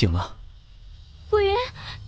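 A young woman sobs softly.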